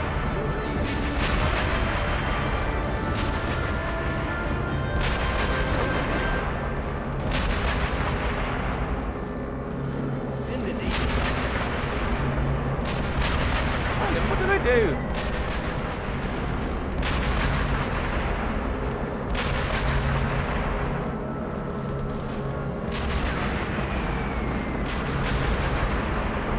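Explosions boom in the distance, again and again.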